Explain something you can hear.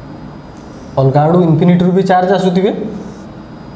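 A man speaks briefly and calmly, close by.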